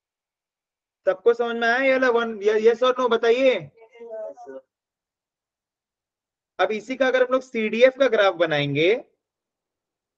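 A young man speaks calmly into a microphone, heard as if over an online call.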